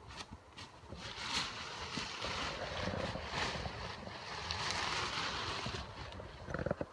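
Nylon fabric rustles and swishes close by.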